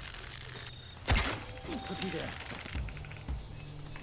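A bow string twangs as an arrow is loosed.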